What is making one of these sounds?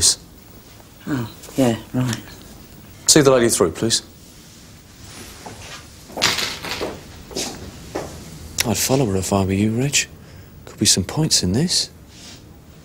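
A man speaks firmly and calmly nearby.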